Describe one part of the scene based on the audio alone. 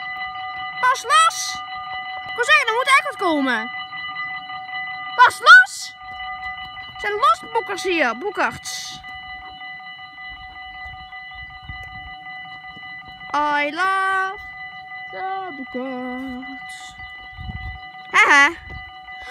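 A level crossing bell rings steadily and rapidly.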